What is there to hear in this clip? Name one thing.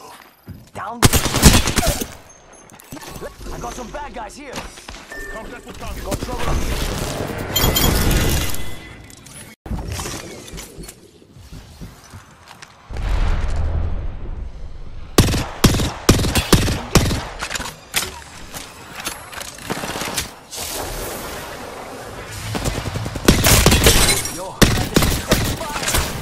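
Gunfire rattles in quick bursts.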